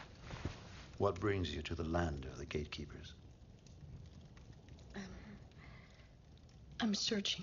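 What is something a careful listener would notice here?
A girl speaks softly nearby.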